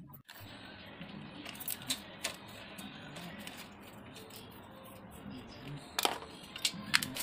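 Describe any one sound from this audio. Plastic pieces knock and rattle when handled.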